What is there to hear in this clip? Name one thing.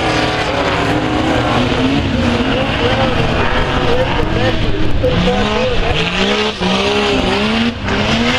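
Several race car engines roar and rev loudly throughout.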